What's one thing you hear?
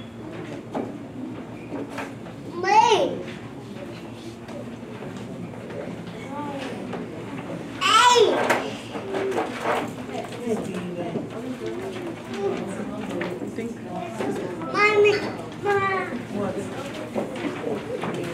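A woman speaks in a room with a slight echo.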